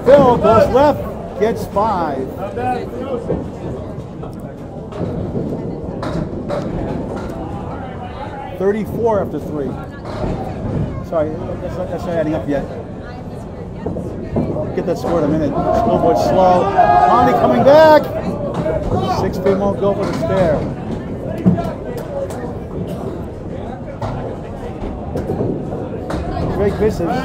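Several men talk and call out in a busy, echoing hall.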